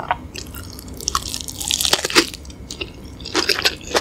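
Crispy fried food crunches loudly as a woman bites into it.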